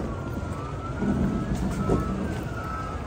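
A truck hood swings open with a heavy thud.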